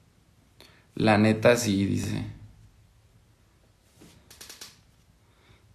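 A man speaks calmly and close up into a microphone.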